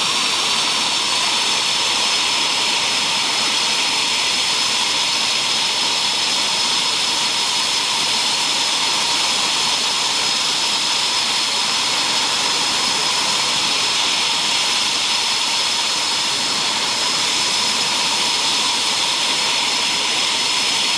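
A jet engine whines loudly and steadily close by.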